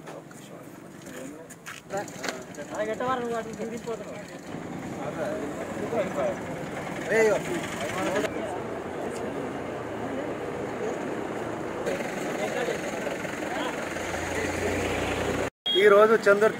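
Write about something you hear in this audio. Men chatter and talk in the background.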